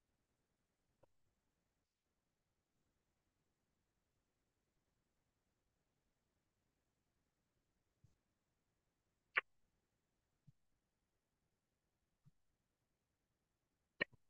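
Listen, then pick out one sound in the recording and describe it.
A marker taps and scrapes against a board.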